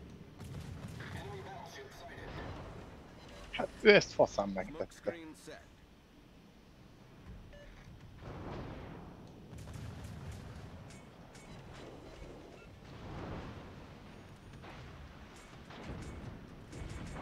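Shells explode with deep booms.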